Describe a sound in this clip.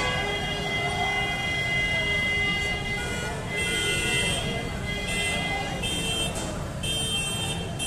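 Motorcycles ride past at low speed.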